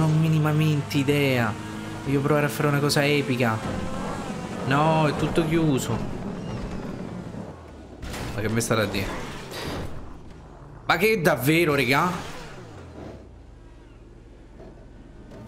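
A car engine revs and hums as the car drives.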